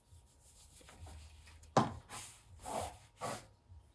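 A knife cuts through soft dough on a board.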